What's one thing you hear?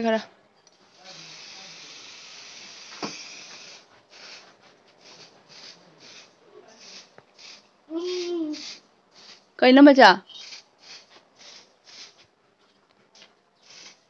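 An aerosol can sprays with a steady hiss, then in short bursts.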